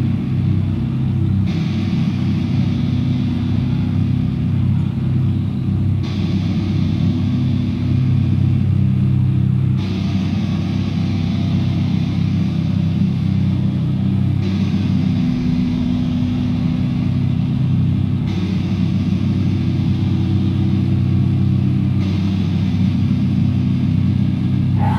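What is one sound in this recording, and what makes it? A loud band plays heavy distorted guitars and bass in a live room.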